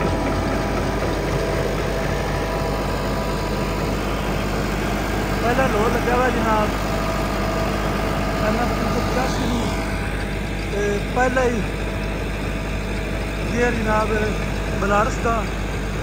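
A tractor engine runs with a steady, low rumble.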